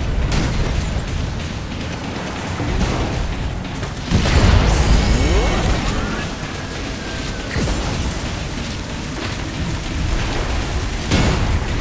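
Energy blasts zap and boom in quick bursts.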